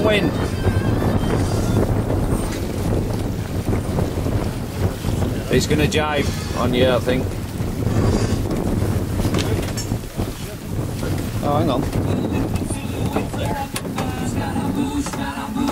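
Wind blows steadily across the microphone.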